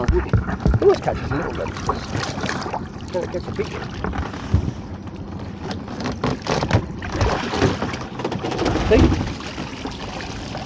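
Water splashes and drips as a crab pot is hauled out of the sea.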